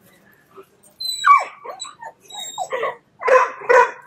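A dog whines excitedly.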